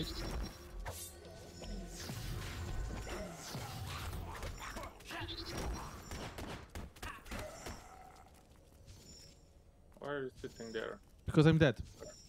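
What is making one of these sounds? Sharp fighting sound effects of blows and blasts crackle in bursts.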